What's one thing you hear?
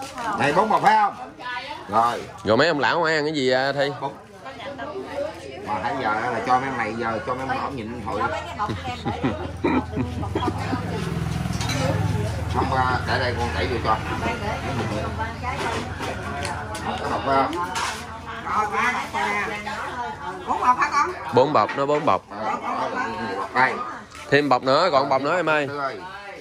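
Several women chat in the background.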